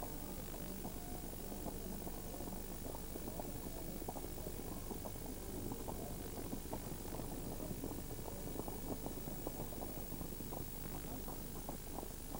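A wooden cart rattles along the road.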